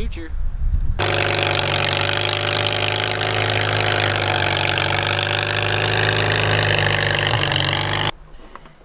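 A pickup truck engine hums low and steady.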